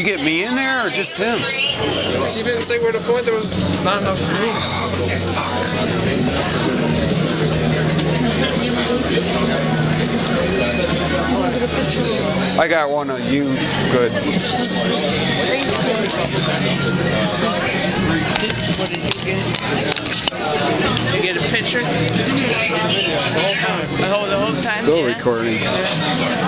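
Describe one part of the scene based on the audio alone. A crowd of people chatters loudly all around.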